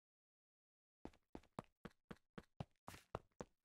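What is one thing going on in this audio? Footsteps tread on stone in a video game.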